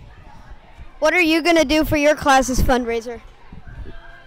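A boy speaks loudly into a microphone.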